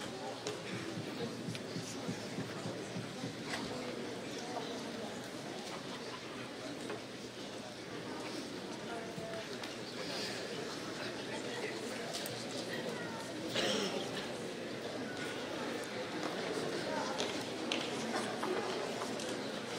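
A young man speaks into a microphone over a loudspeaker in a large echoing hall.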